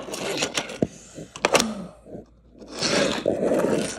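A small toy car rolls across a wooden floor.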